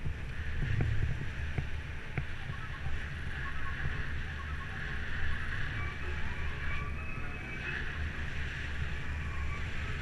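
Wind rumbles and buffets outdoors as a bicycle rides along.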